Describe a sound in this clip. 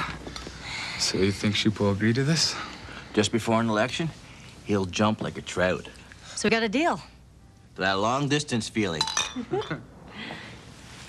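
A young man talks and laughs, close by.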